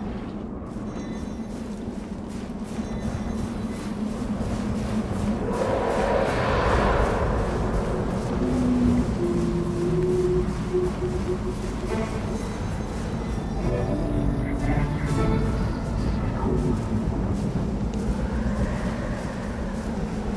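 Figures slide and swish through deep snow.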